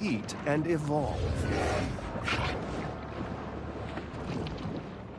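Water swooshes and bubbles.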